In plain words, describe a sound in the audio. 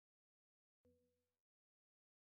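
A short electronic blip sounds.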